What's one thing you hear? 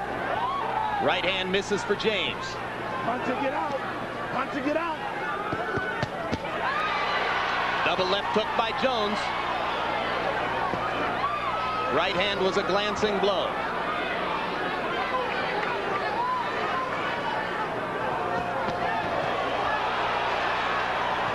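A large crowd murmurs and cheers in a big arena.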